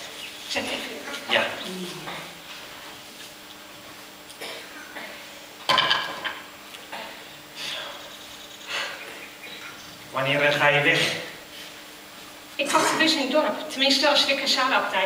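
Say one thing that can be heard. A man speaks loudly and clearly in a large hall.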